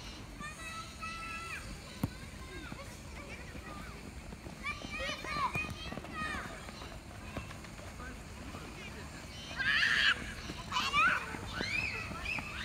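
Young children shout and call out outdoors.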